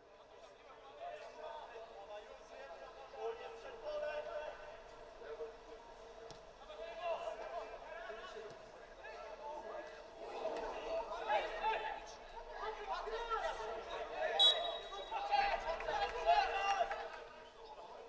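Footballers shout and call to each other outdoors.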